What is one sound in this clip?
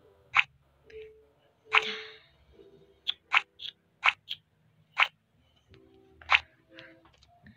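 Short electronic clicks pop one after another.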